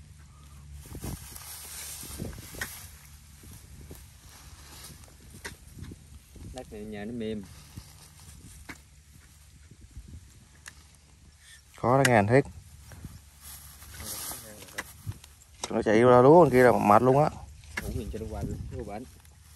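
A metal rod thuds and scrapes into soft earth.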